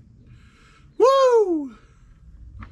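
A man lets out a long whooping cry.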